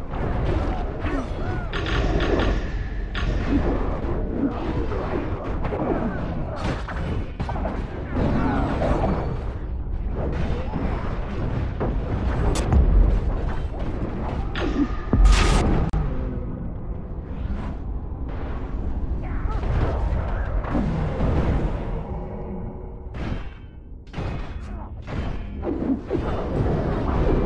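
Game spell effects crackle and boom during a fast battle.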